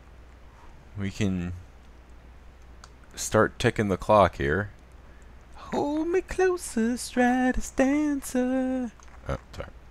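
A man talks with animation, close to a microphone, with short pauses.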